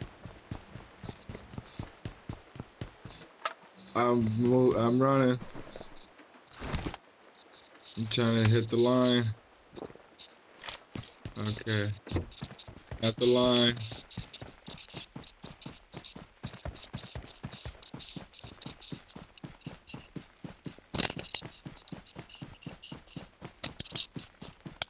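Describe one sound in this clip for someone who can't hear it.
Footsteps patter quickly and steadily.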